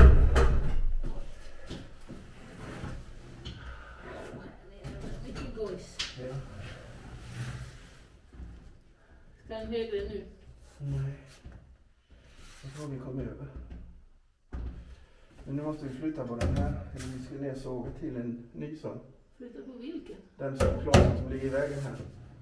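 Wooden beams knock and thump.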